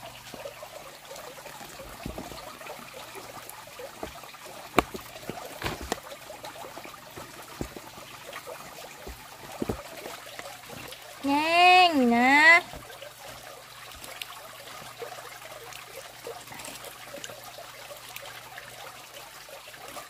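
Wet feathers squelch and rustle as hands rub them in water.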